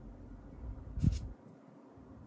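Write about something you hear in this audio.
A small plastic toy clicks as it is set down on a plastic surface.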